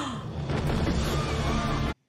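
A woman gasps in shock close by.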